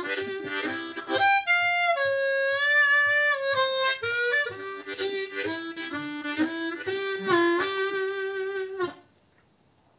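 A harmonica plays a melody up close.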